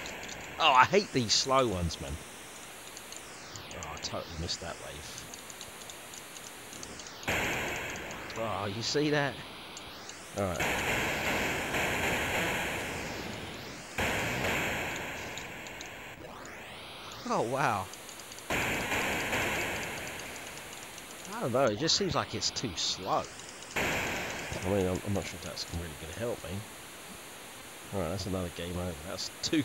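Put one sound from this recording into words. Electronic game sound effects zap and buzz.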